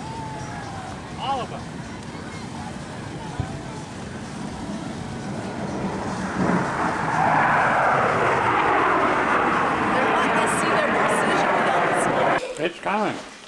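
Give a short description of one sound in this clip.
Jet planes roar overhead, swelling louder and then cutting off.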